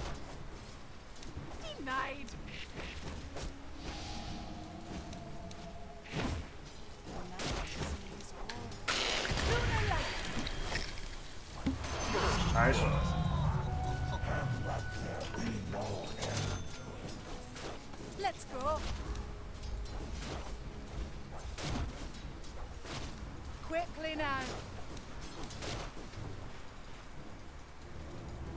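Weapons clash and magic effects crackle in a fast fight.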